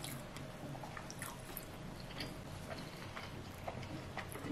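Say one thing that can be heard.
A young woman chews food with wet mouth sounds close to a microphone.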